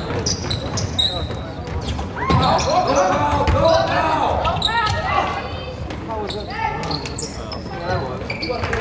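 Young players and spectators shout and call out in a large echoing gym.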